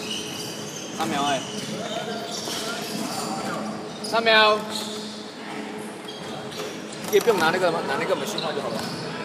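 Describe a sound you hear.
Young men shout to each other across a large echoing gym.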